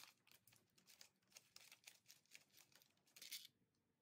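A ratchet wrench clicks as a bolt is turned.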